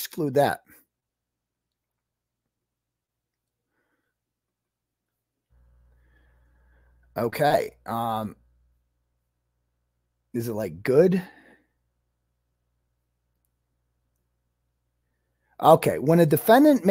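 A middle-aged man speaks calmly into a headset microphone, in short bursts with pauses.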